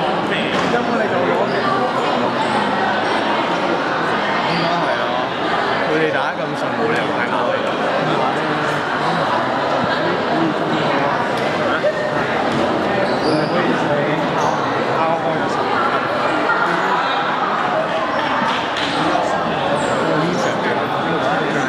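Many young people chatter and call out across a large echoing hall.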